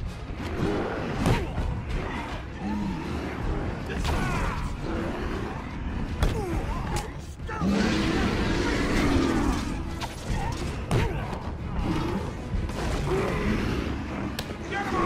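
Punches land with heavy thuds in a fight.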